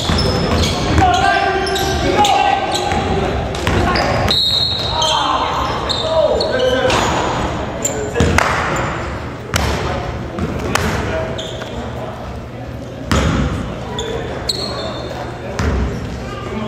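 Young men shout to each other in a large echoing gym.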